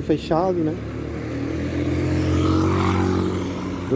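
A motorcycle engine hums as it approaches and passes close by.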